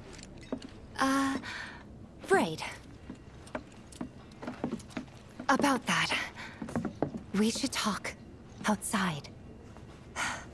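A young woman speaks softly and hesitantly.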